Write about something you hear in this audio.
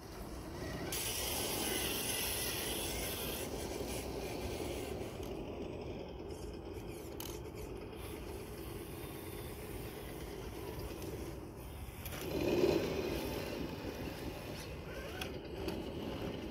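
Plastic tyres scrape and crunch over rock and dry pine needles.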